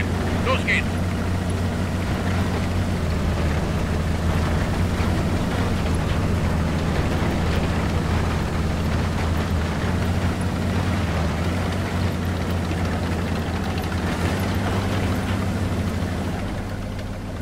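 A heavy tank engine rumbles low and steady as the tank drives.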